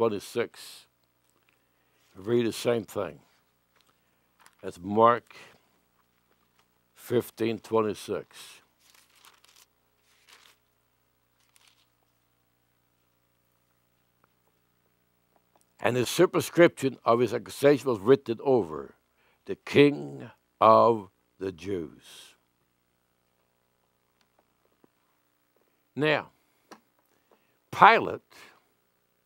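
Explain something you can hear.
An elderly man speaks calmly into a microphone, reading out in short phrases with pauses.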